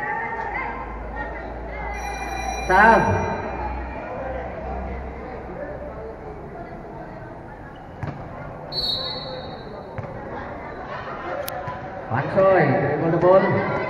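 A crowd of children and adults chatters.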